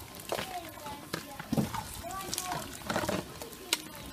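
A ladle scoops and splashes in water.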